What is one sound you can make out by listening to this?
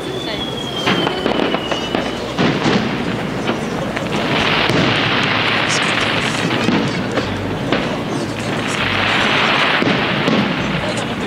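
Fireworks burst with loud booms.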